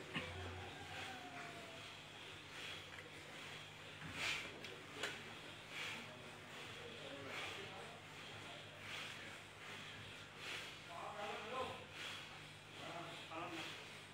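A man recites softly in a low voice close by.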